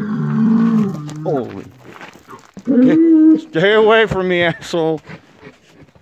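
Animals call out loudly several times, close by.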